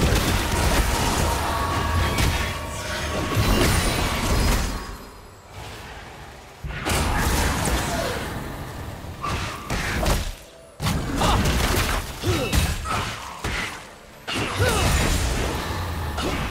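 Weapons clash and strike in quick succession.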